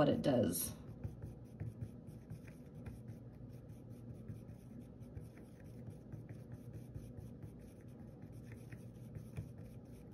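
A paintbrush taps and swirls softly in paint on a plastic palette.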